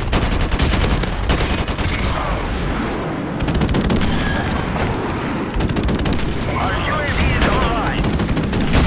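A rifle fires in rapid bursts close by.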